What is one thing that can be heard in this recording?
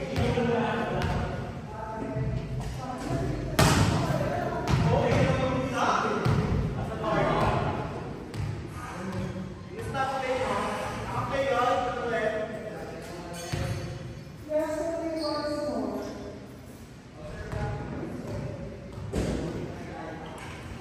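Young men talk and call out in an echoing hall.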